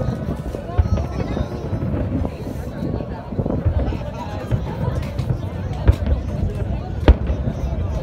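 A crowd of spectators murmurs close by.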